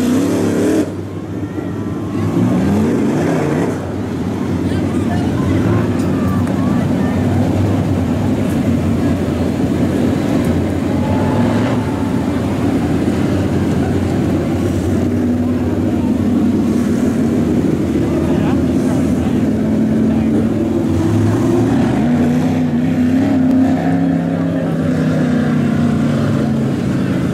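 Race car engines idle and rumble loudly nearby.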